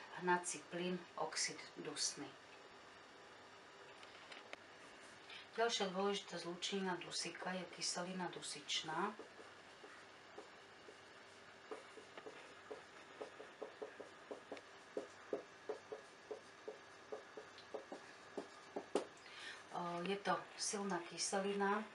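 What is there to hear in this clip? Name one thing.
A middle-aged woman speaks calmly and clearly nearby.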